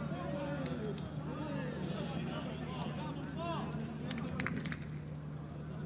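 Young men shout and cheer excitedly close by.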